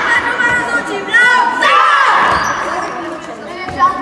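A group of young boys chants and cheers loudly in an echoing hall.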